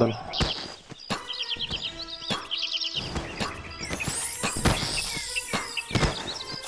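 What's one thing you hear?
Metal weapons clash and clank in a fight.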